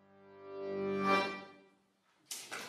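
An accordion plays a final chord that swells and fades.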